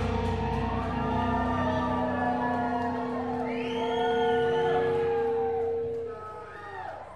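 An electric guitar rings out with a loud sustained chord.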